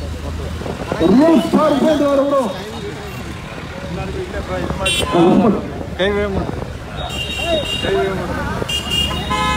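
Men shout loudly close by, chanting in a crowd.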